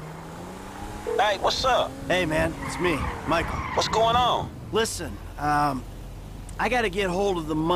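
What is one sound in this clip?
A man talks over a phone.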